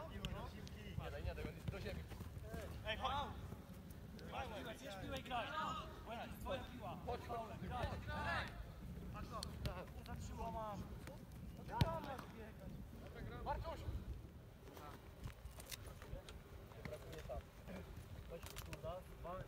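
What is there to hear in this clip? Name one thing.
Young men call out to each other outdoors.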